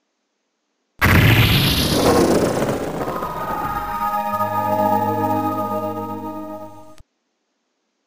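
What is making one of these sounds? A loud electronic crash bursts out and slowly rings away.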